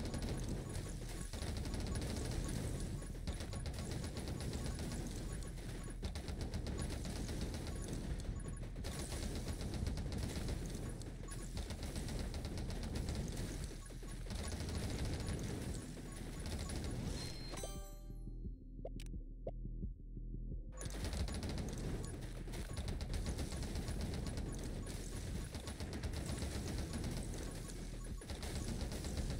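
Rapid electronic shots crackle in a fast game.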